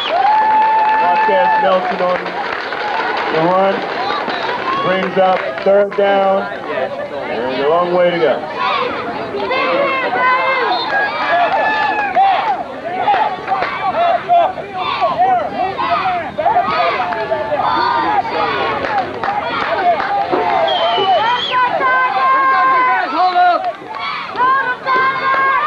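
Young boys shout to one another nearby.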